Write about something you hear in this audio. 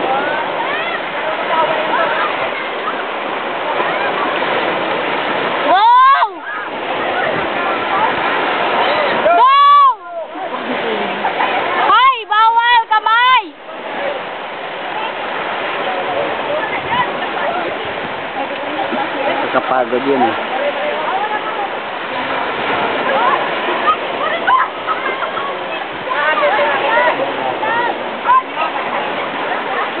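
Waves wash in steadily.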